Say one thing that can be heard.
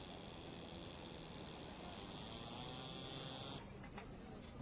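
A boat engine chugs on the water.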